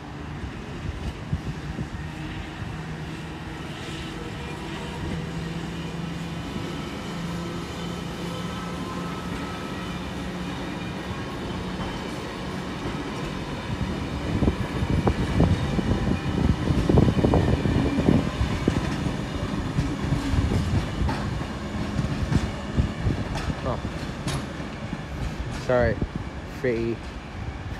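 An electric train hums steadily as it rolls slowly along nearby tracks.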